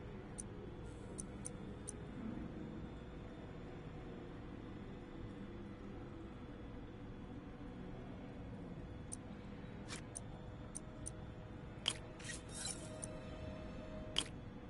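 Short electronic menu clicks and beeps sound now and then.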